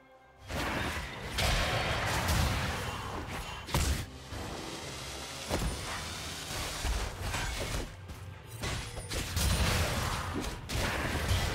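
Game spells whoosh and crackle during a fast fight.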